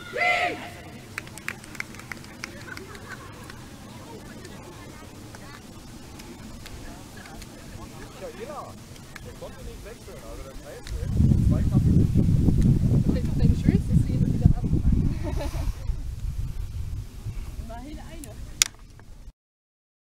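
Young female players call out across an open field.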